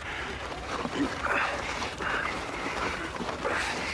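A man grunts with effort nearby.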